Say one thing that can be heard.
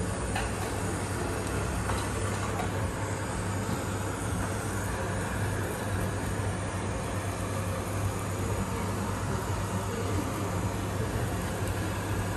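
A conveyor belt hums steadily as it moves along.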